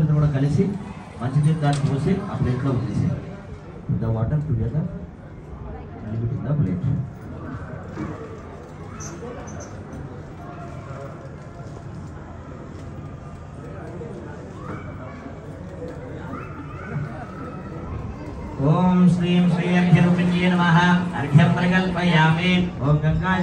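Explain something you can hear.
Several men chant together.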